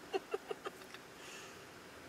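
A woman laughs briefly in short bursts close by.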